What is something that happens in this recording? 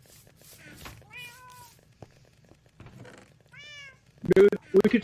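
A cat meows in short, high cries.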